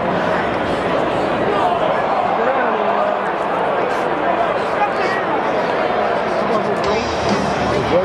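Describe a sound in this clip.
A large crowd murmurs and chatters all around in an open stadium.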